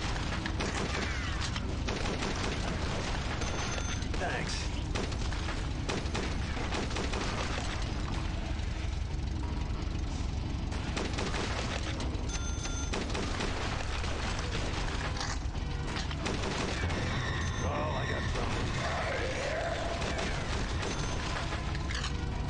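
A heavy machine gun fires in rapid, booming bursts.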